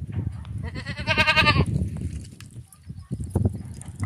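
Milk squirts into a metal cup.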